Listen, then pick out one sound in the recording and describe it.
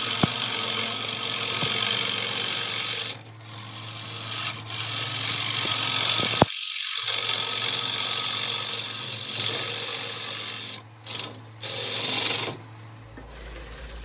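A wood lathe whirs steadily.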